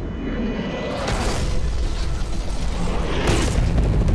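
Gunfire bursts out loudly.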